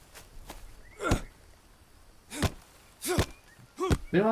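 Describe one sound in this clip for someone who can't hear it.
A blade swishes and slashes through leafy plants.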